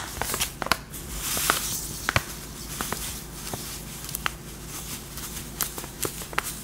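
Sugar pours into a bowl with a soft hiss.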